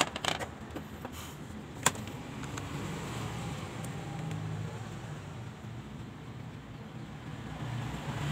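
A phone is lifted and handled, rubbing against a hand.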